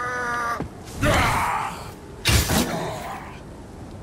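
Metal blades clash hard in a fight.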